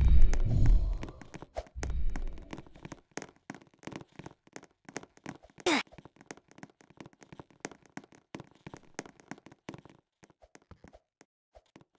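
Quick footsteps patter on stairs and a hard floor.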